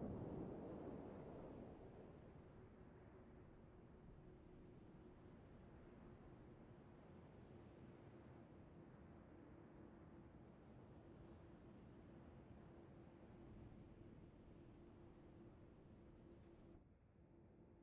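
Water rushes and splashes along a moving ship's hull.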